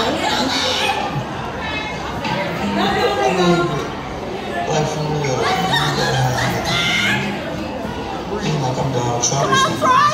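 Pop music with a singer plays loudly over loudspeakers.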